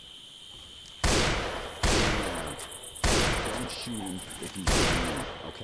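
A rifle fires loud, sharp shots that boom and echo away.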